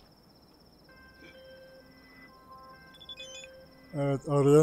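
A phone rings with short electronic tones.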